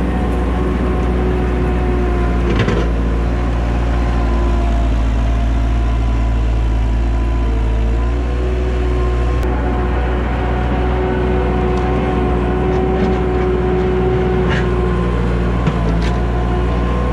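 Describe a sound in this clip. Wood debris scrapes and clatters as a loader bucket pushes it.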